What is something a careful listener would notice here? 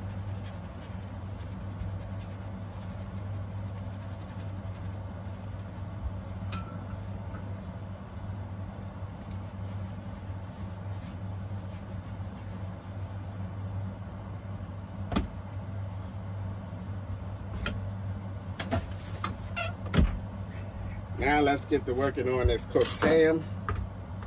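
Food sizzles in a frying pan.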